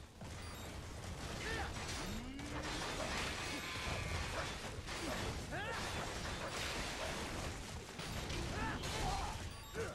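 Blades clash and slash in quick, metallic strikes.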